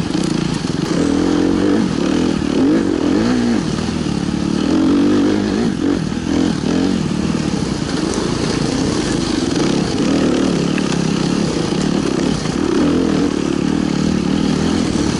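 Dirt bike engines rev and whine close by, rising and falling.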